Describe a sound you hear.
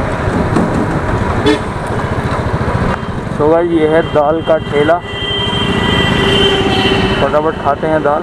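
Nearby motorbikes and auto-rickshaws drive past in traffic.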